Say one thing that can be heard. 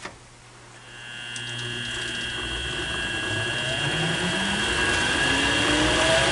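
A lathe motor starts up and whirs faster and faster.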